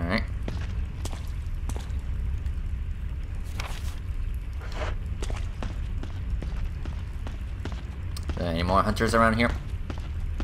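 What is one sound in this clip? Footsteps tread steadily on a hard floor.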